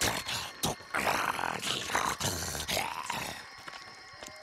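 A creature snarls and groans in pain.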